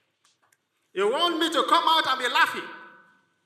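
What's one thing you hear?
A woman speaks loudly and with animation through a microphone.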